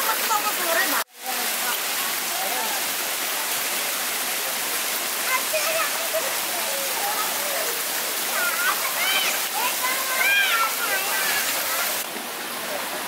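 A waterfall splashes and rushes steadily.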